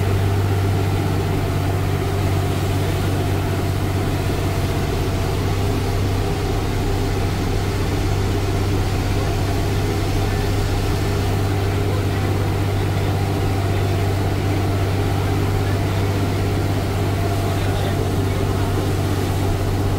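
A bus engine hums low and steady from inside the cab.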